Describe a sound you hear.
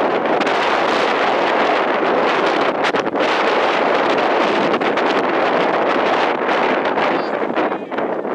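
Wind blows hard across an open field, rumbling and gusting.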